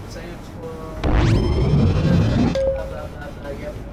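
A bright electronic game sound swells with a quick rising chime.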